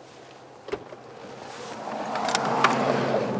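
Road noise rushes in as a car door opens.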